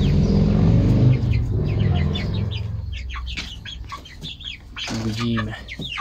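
Young broiler chickens peep and chirp.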